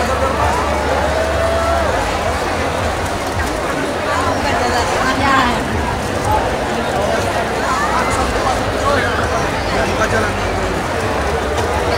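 A large crowd chatters and calls out loudly all around.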